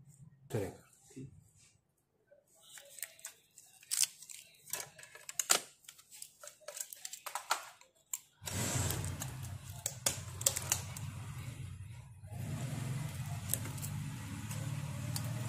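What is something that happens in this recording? Plastic and metal parts click and clatter as they are handled.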